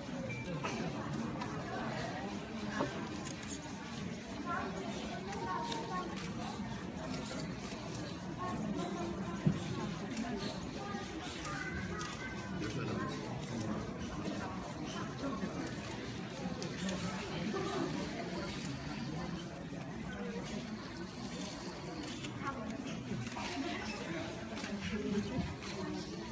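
Electric hair clippers buzz.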